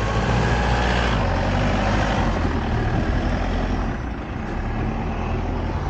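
A truck engine rumbles nearby at idle.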